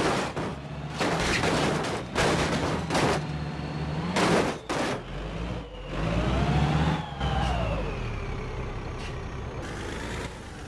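A bus engine hums.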